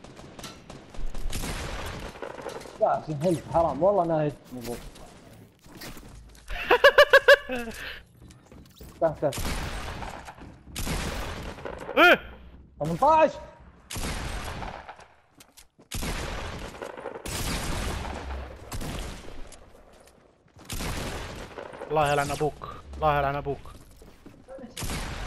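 Gunshots ring out in a video game firefight.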